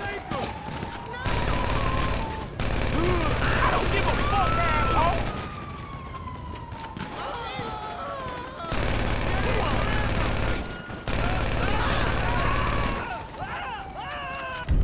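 Police sirens wail nearby, rising and falling.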